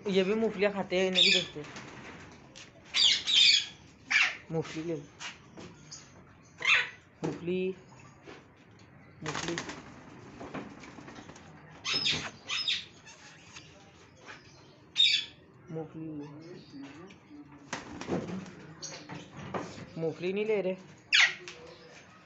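Parrots screech and squawk loudly close by.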